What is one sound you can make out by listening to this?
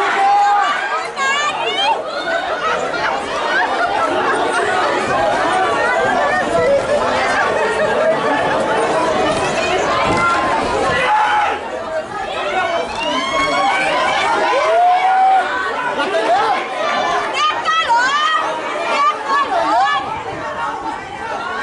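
A crowd of men and women shouts and cheers loudly outdoors.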